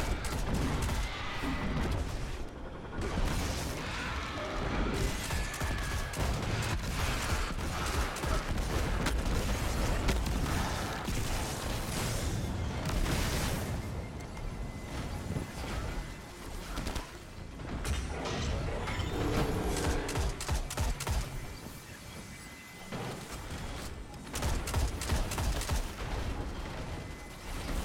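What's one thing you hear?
Rapid gunfire rattles and booms.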